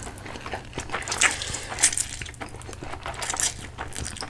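A young woman slurps noodles loudly, close up.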